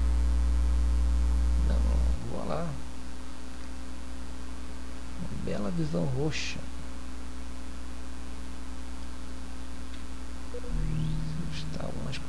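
A spaceship engine hums steadily.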